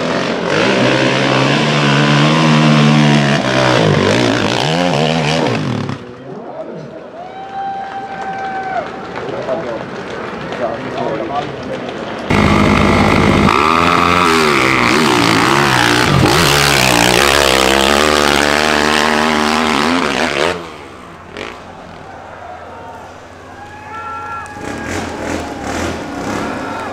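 Dirt bike engines rev and roar loudly, rising and falling in pitch.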